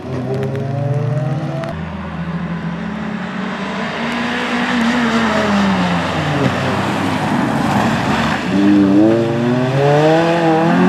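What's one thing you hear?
A car engine revs hard, rising and falling in pitch as the car accelerates and shifts gears.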